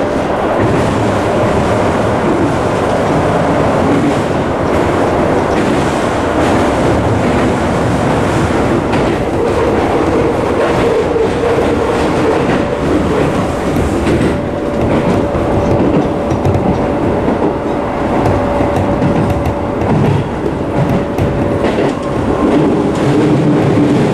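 A train car rumbles and rattles loudly as it runs along the tracks.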